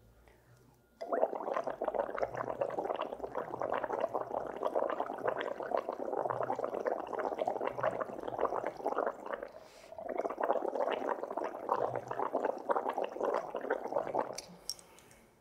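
Liquid sloshes and rattles in a stoppered tube being shaken.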